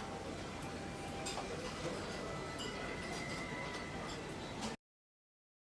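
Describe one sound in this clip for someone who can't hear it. Footsteps walk across a floor.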